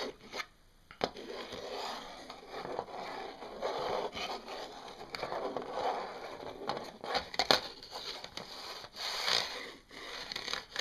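Hands rub and scratch across a surface.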